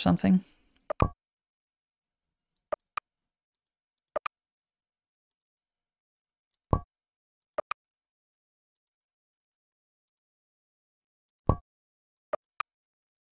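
A computer mouse clicks sharply several times.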